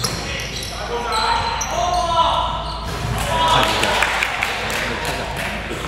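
Young men call out to each other during play.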